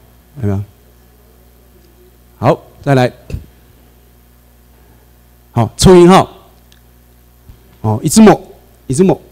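A man lectures through a microphone in a hall, speaking in short bursts with pauses.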